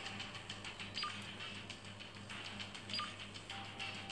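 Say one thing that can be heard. A handheld thermometer gives short beeps.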